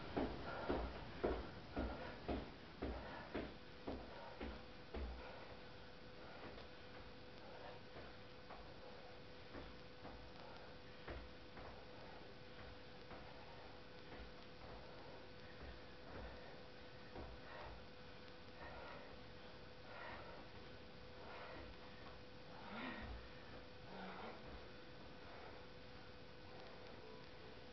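Sneakers thump rhythmically on a floor, loudly at first and then softer.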